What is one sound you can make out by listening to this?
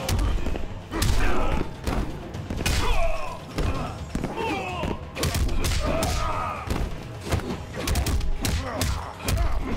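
Fighters grunt and yell as they strike.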